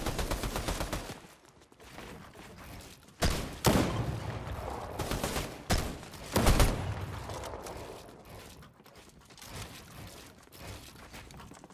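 Wooden walls and ramps are built with quick, repeated clacks.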